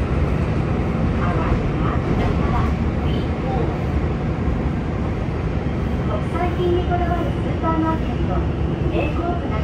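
A train car rumbles and rattles steadily along the tracks.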